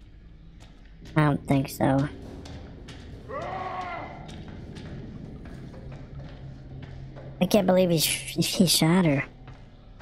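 Footsteps echo slowly along a hard corridor floor.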